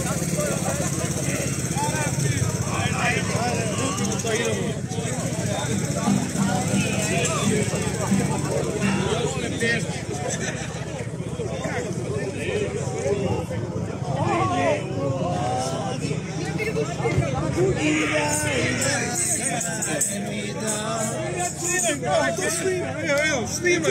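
A group of people talk and call out nearby.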